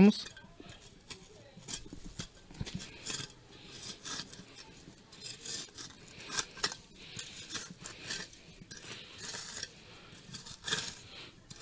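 A trowel scrapes and digs into dry soil.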